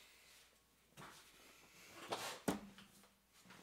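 Plastic paint pots clatter as they are handled.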